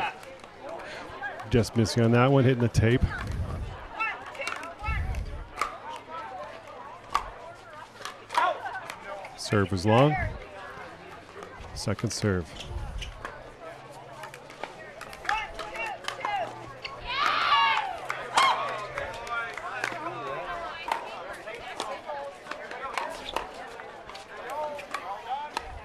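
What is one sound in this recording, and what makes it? Paddles pop against a plastic ball in quick rallies.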